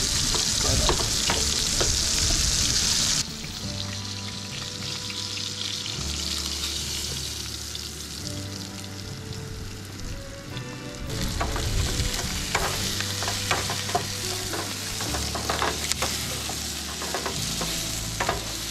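A wooden spatula scrapes and taps against a metal pan.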